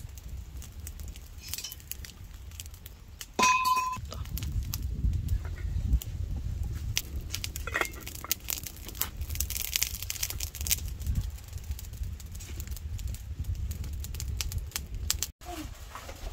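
A wood fire crackles outdoors.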